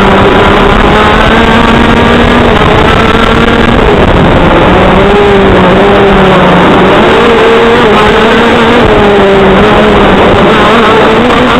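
A kart engine drones loudly close by, its pitch rising and falling with the throttle.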